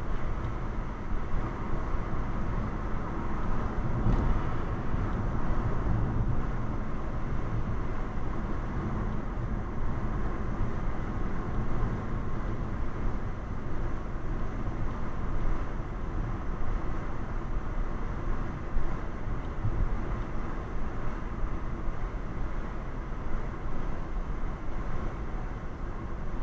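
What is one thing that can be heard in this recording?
A car's engine hums steadily, heard from inside the car.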